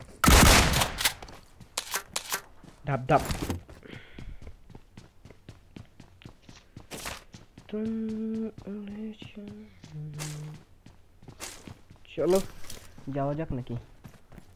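Footsteps thud across hard ground and floors.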